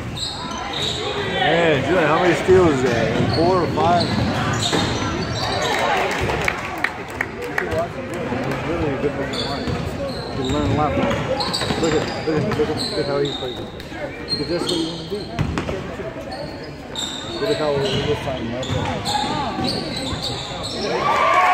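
A crowd of spectators cheers and shouts in a large echoing gym.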